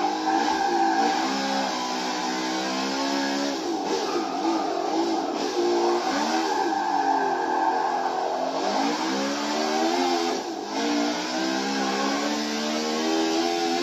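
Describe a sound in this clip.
A racing car engine roars loudly, rising and falling in pitch as gears shift.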